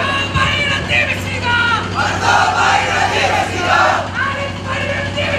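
A crowd of men chants loudly together through a loudspeaker.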